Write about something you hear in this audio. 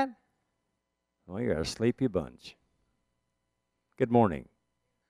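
An elderly man speaks calmly and expressively into a close microphone, with short pauses.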